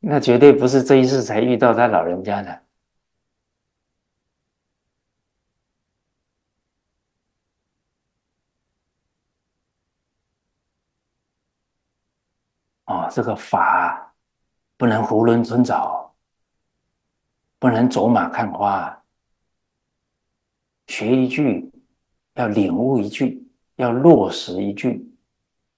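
An elderly man speaks calmly and clearly into a close microphone, in short phrases with pauses.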